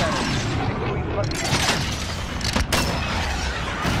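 A missile's rocket motor roars as it dives.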